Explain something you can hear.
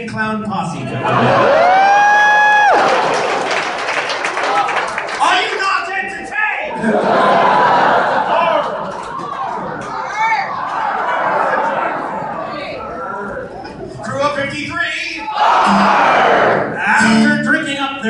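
Men sing together loudly through loudspeakers in a large hall.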